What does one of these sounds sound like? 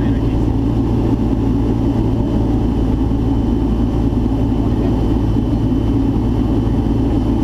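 A small plane's propeller engine drones loudly and steadily from inside the cabin.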